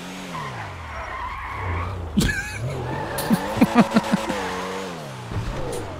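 Car tyres screech while skidding on tarmac.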